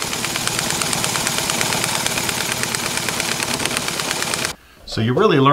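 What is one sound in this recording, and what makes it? A small engine runs with a fast, buzzing rattle, then stops abruptly.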